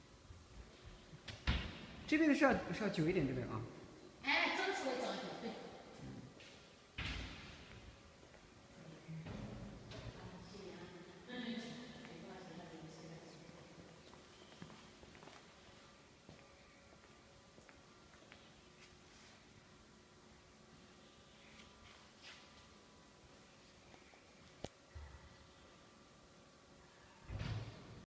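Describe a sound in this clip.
Machines hum steadily in a large hall.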